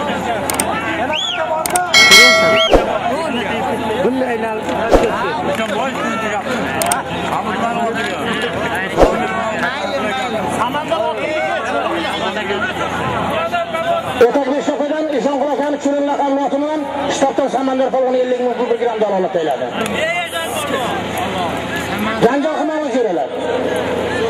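A large crowd of men chatters and shouts outdoors.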